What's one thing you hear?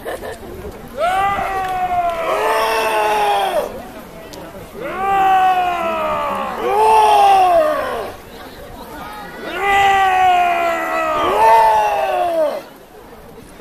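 A man calls out in long, loud, falling cries outdoors.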